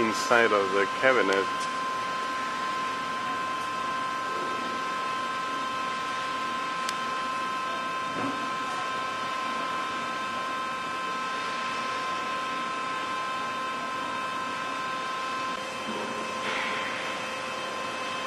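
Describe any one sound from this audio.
Electrical equipment gives off a steady high whine.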